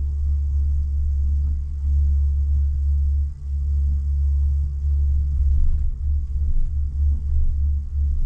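A cable car cabin hums and rumbles steadily as it glides along its cable.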